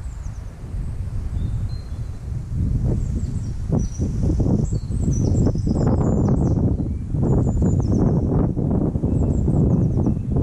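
Wind rumbles and buffets across open water.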